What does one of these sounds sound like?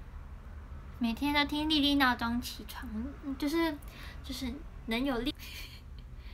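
A young woman talks cheerfully and expressively close to a microphone.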